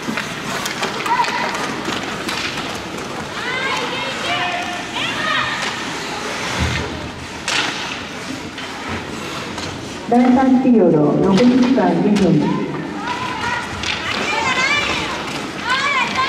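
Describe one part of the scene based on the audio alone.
Children shout and call out across the rink.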